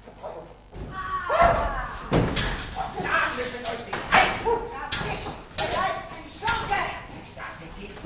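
A woman shrieks loudly.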